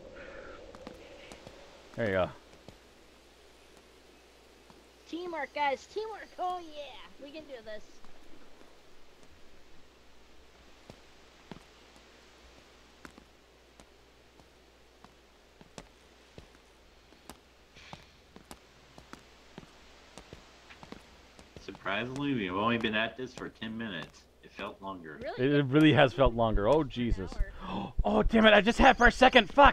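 Footsteps tread lightly on wooden boards and gravel.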